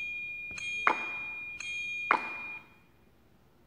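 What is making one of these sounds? Bright electronic game tones play from a small speaker.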